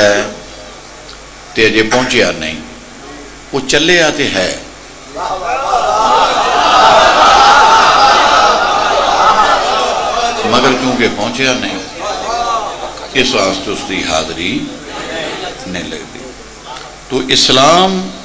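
A man speaks passionately and loudly through a microphone, with pauses between phrases.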